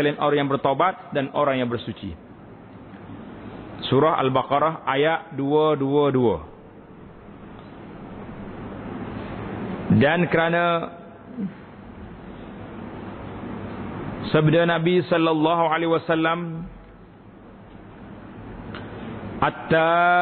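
A middle-aged man speaks with emphasis into a microphone, pausing between phrases.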